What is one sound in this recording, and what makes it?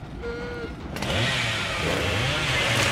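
A chainsaw revs.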